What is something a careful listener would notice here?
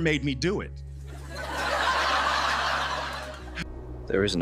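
An audience laughs and applauds.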